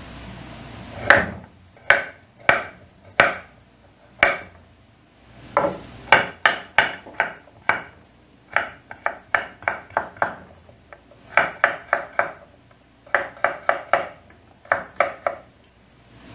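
A knife chops quickly on a wooden cutting board.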